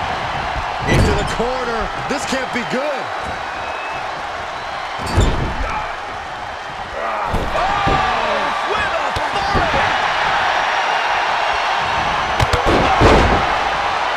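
Heavy bodies slam and thud onto a wrestling ring mat.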